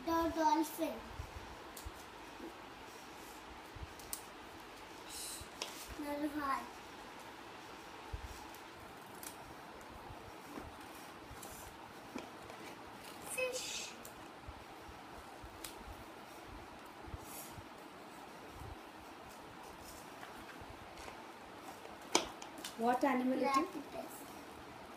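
A young child speaks softly nearby.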